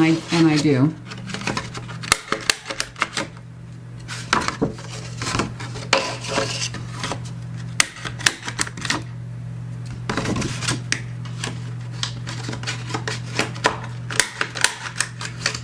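A tool scrapes and creases along cardboard.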